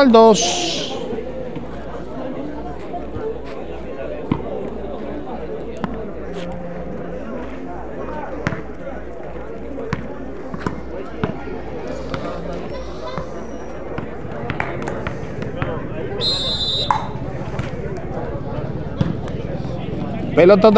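A ball bounces on a hard court.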